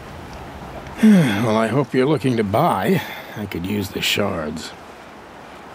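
A man speaks calmly and warmly, close by.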